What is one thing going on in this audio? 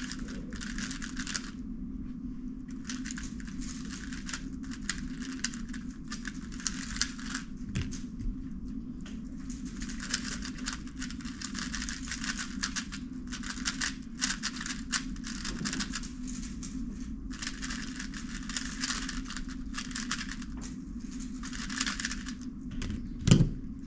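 Plastic puzzle cube pieces click and rattle rapidly as they are turned.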